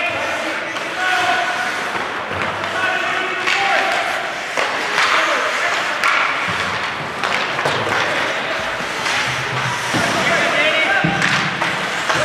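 Spectators and players shout and cheer in a large echoing rink.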